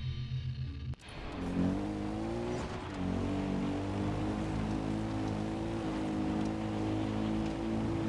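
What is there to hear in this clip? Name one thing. A quad bike engine hums steadily while driving.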